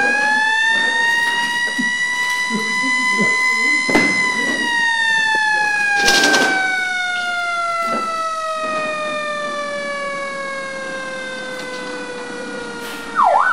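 A siren wails loudly, slowly rising and then falling in pitch.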